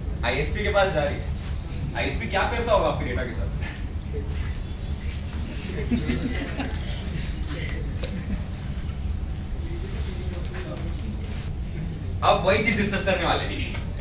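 A young man speaks to an audience.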